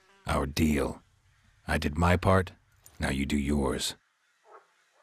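A middle-aged man speaks calmly in a deep voice.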